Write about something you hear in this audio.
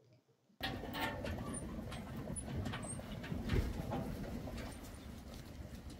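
A flock of sheep shuffles and jostles close by.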